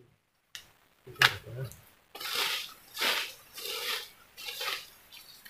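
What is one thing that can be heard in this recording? Dry leaves rustle as a man crouches on the ground.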